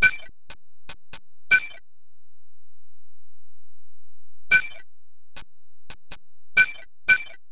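Short electronic menu beeps and chimes sound in quick bursts.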